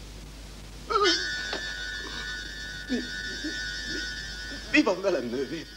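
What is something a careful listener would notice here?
A man speaks with surprise, close by.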